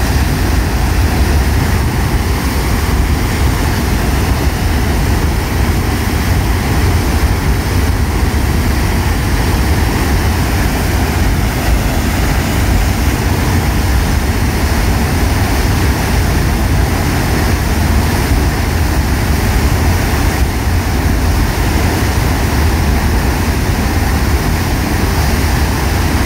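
Water gushes and roars steadily from a dam outlet.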